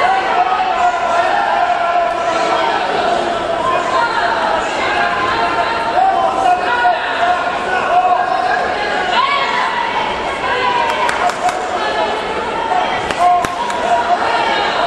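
A crowd in a large echoing hall shouts and cheers throughout.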